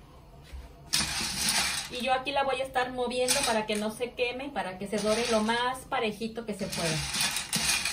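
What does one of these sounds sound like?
A wooden spoon scrapes and stirs food in a pan.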